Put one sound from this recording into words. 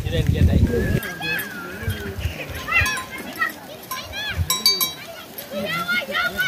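Goats' hooves patter on dry grass.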